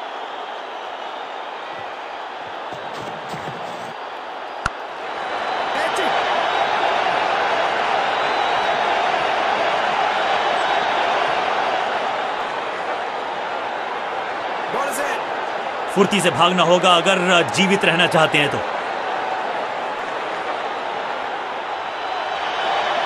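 A crowd cheers and roars steadily in a stadium.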